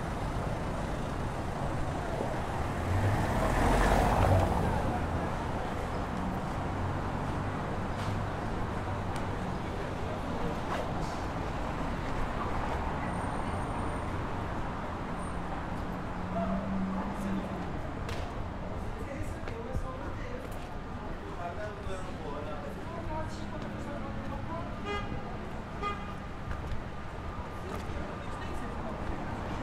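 Street noise hums steadily outdoors.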